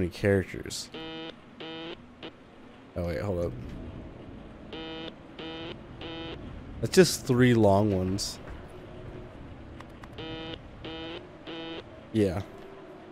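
Short electronic beeps play in quick rhythmic bursts.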